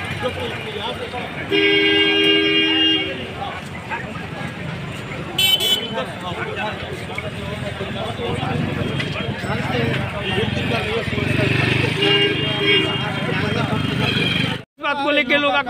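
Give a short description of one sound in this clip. A man speaks with animation among a crowd.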